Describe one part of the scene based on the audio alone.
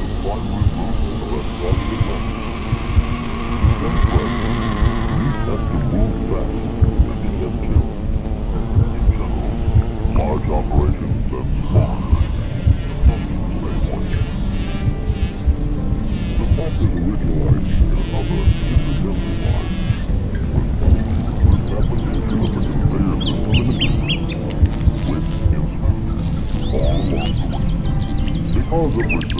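Bees buzz in a dense swarm.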